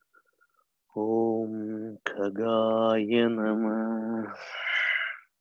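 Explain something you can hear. A man chants a long, steady tone, heard through an online call.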